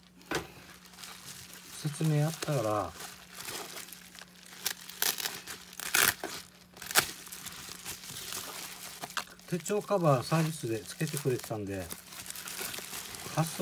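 Bubble wrap crinkles and rustles as hands handle it.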